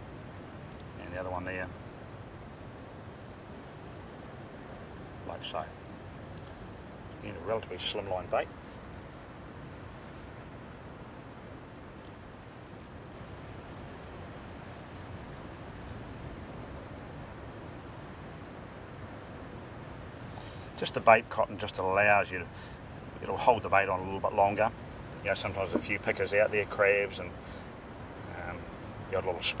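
A middle-aged man talks calmly up close.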